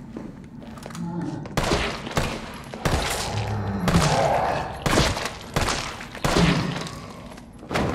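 A man groans hoarsely.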